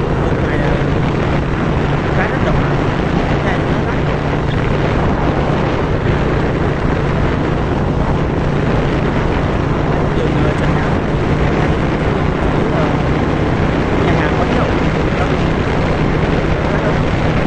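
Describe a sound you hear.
Wind rushes loudly and steadily past a moving vehicle outdoors.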